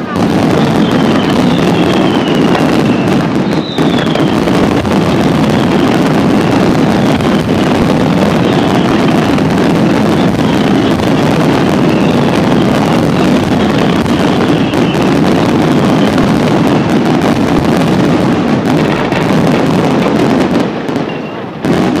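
Fireworks boom and crackle loudly and continuously.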